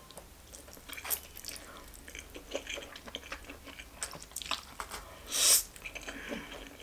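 A young woman slurps noodles loudly close to a microphone.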